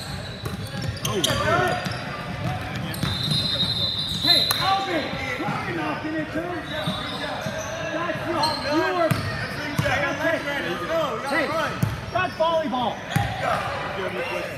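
Sneakers squeak sharply on a hardwood court in an echoing gym.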